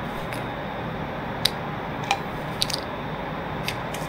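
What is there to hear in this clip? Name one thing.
A shotgun is loaded with clicks.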